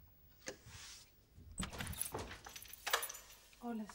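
A door latch clicks and a door opens.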